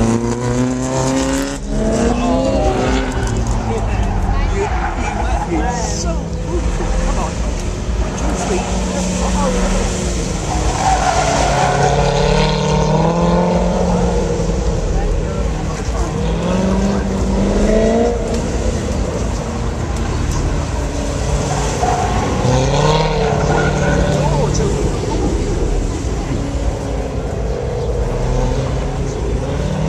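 Car tyres squeal on pavement.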